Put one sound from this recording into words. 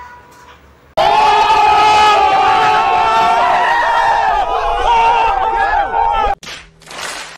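A crowd of young people shouts and cheers loudly outdoors.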